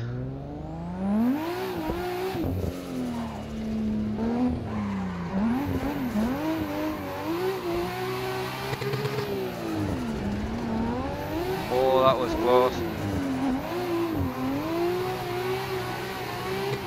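Tyres screech as a car slides through corners.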